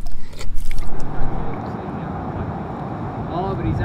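Shallow water trickles and ripples over sand close by.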